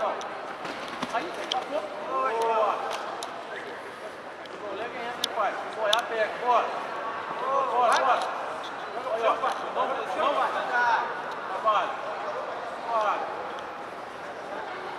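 A crowd of men shouts and cheers loudly in a large echoing hall.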